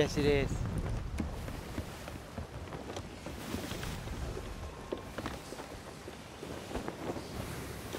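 Rough sea waves surge and crash.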